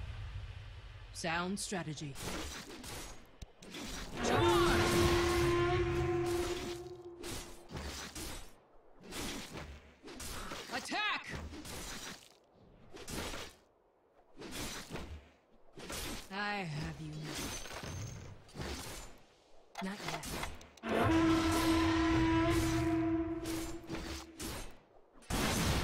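Sword blows clash and thud in quick bursts.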